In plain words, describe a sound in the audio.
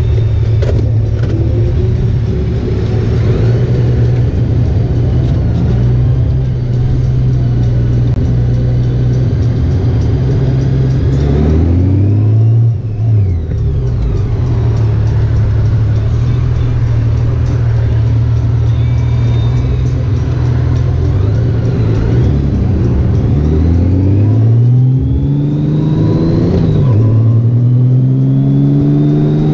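A motorcycle engine hums steadily up close and rises and falls in pitch as the rider shifts gears.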